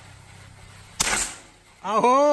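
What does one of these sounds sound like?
A rifle fires a single sharp shot outdoors.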